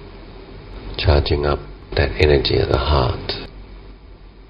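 A man speaks briefly and calmly into a microphone close by.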